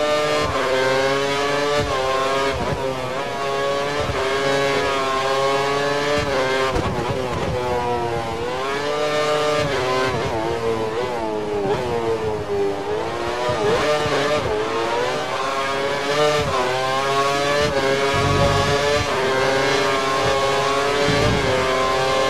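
A racing car engine whines at high revs, rising and falling as it shifts gears and slows for corners.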